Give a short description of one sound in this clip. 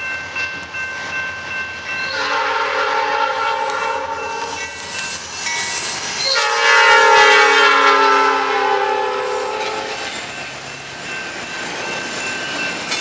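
A diesel locomotive engine rumbles and roars past close by.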